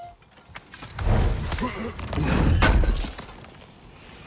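A heavy wooden chest creaks and thuds open.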